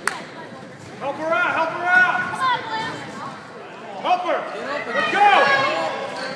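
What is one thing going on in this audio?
Women and girls shout and cheer loudly nearby.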